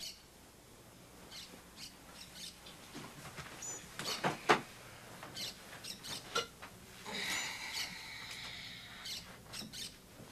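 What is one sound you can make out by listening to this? Bedclothes rustle.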